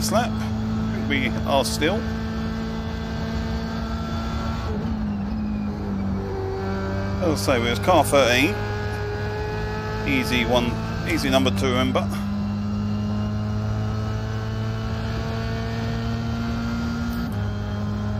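A racing car engine drones steadily, shifting pitch with gear changes.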